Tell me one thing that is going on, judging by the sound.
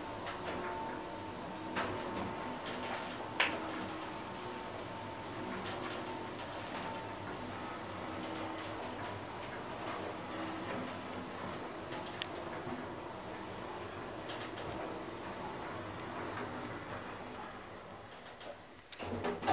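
An elevator hums steadily as it moves down.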